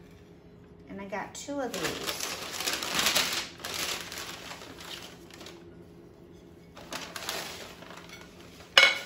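Tissue paper rustles and crinkles as it is handled.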